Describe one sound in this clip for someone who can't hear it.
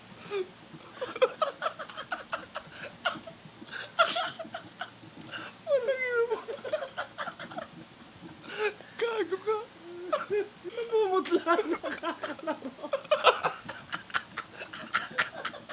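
Two young men laugh loudly and heartily close by.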